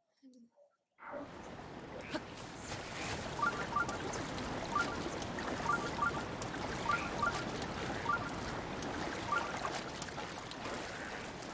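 Water splashes and rushes as a swimmer moves through it.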